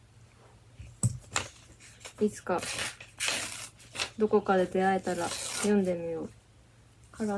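Paper rustles and crinkles in a hand.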